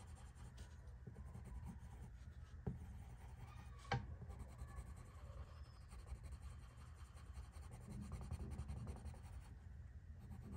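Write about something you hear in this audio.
A pencil scratches softly on paper.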